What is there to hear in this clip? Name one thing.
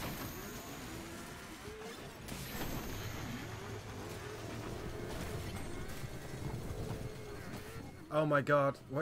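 A motorbike engine roars and revs.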